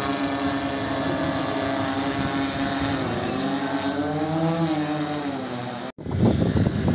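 A drone's rotors hum steadily overhead, the pitch rising and falling.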